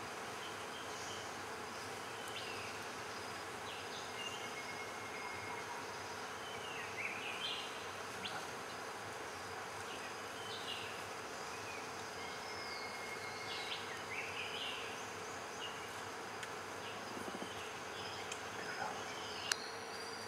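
Birds chirp and whistle nearby in a forest.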